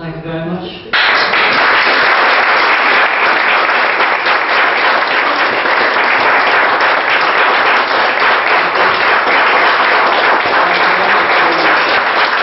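A small audience applauds loudly in a room.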